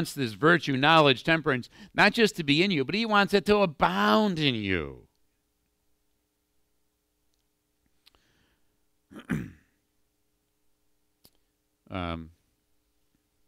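A man preaches with animation over a microphone in a large room.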